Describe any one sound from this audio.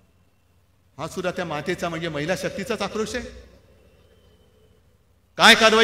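A middle-aged man speaks forcefully through loudspeakers, his voice echoing outdoors.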